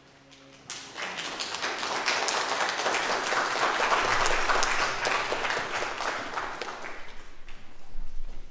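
An audience claps loudly in a large room.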